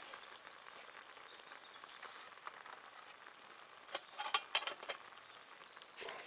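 A small wood fire crackles softly.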